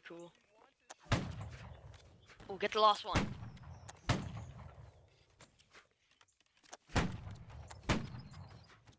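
Muskets fire in sharp, loud cracks, one after another.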